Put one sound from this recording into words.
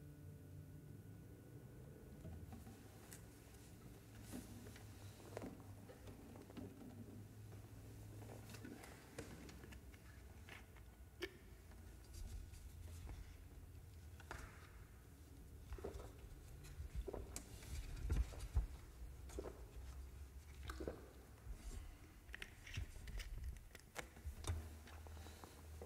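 Two guitars play soft, sparse plucked notes.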